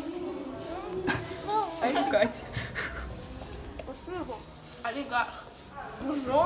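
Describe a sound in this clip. A young girl talks and laughs close by with animation.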